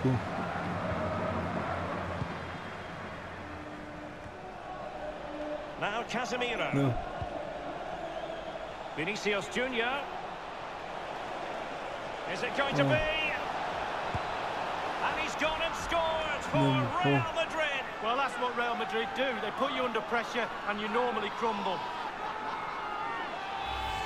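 A large stadium crowd murmurs and cheers throughout.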